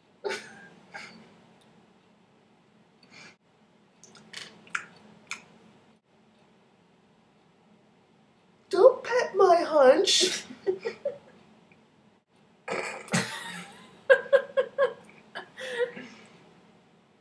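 A young woman talks and laughs close to a webcam microphone.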